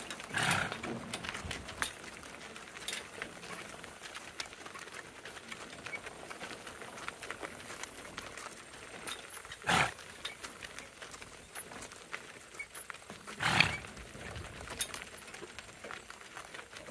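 Hooves clop steadily on a gravel road.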